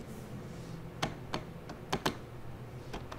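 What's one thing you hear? Phone keypad buttons click as they are pressed.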